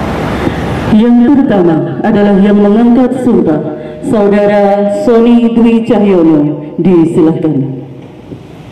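A man chants a recitation through a loudspeaker, echoing outdoors.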